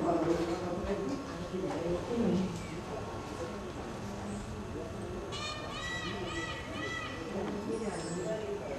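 Several adult men talk casually nearby.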